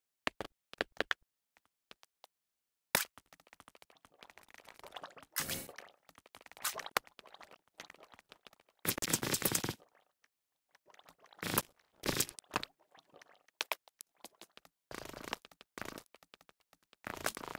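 Stone blocks crack and crumble as they are dug out.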